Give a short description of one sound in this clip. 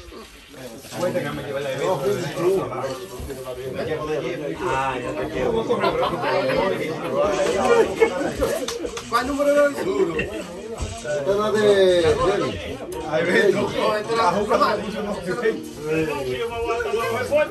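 Several men talk and chatter loudly and excitedly nearby, indoors.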